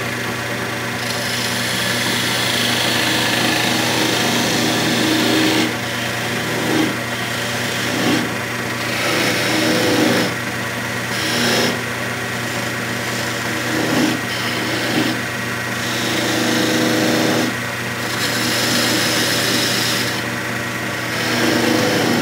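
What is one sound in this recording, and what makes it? A chisel scrapes and hisses against spinning wood in bursts.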